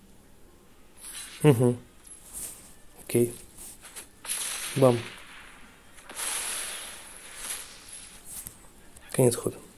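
Game sound effects whoosh and chime as cards attack.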